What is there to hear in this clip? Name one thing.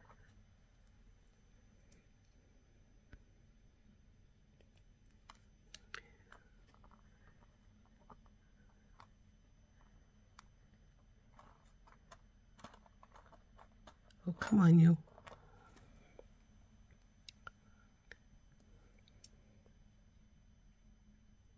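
Wire cutters snip with a sharp click.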